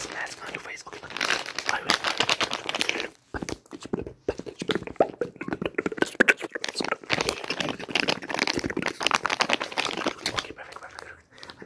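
Plastic packaging crinkles and rustles in a hand.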